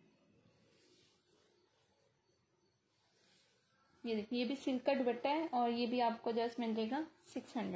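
Fabric rustles as hands lift and shift it.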